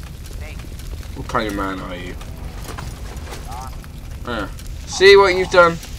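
Fire crackles steadily.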